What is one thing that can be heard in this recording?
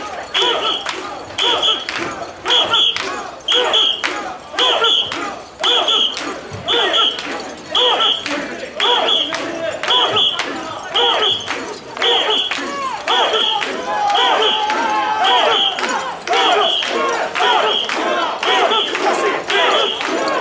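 A large group of men chants loudly in a steady rhythm, outdoors.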